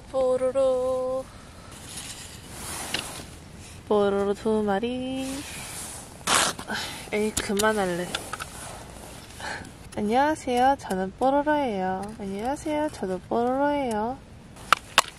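A young woman speaks in a playful, sing-song voice close by.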